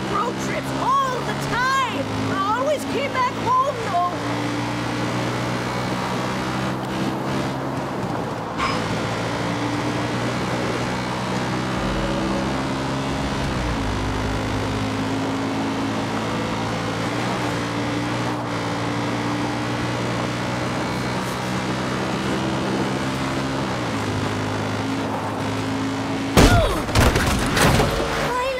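A quad bike engine drones as it rides, shifting up and down in pitch.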